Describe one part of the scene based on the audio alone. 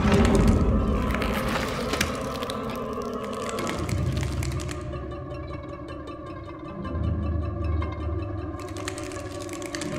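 Light footsteps patter across a hard floor.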